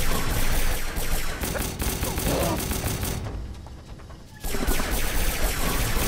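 Gunfire crackles rapidly.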